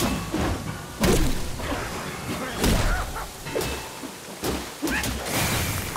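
Swords clash with sharp, ringing strikes.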